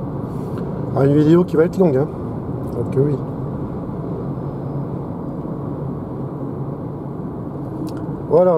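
A car hums steadily as it drives along a road, heard from inside.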